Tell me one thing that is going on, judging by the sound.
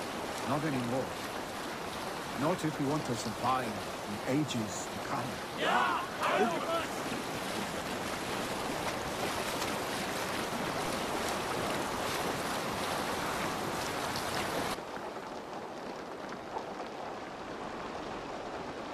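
Rain falls steadily, hissing.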